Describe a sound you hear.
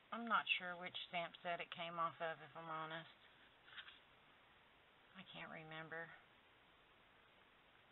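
Card stock rustles and slides against another card.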